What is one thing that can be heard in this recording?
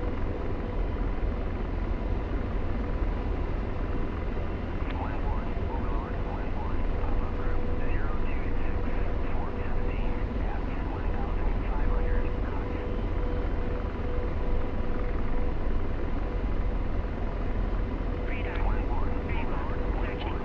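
A helicopter engine and rotor drone steadily from inside the cockpit.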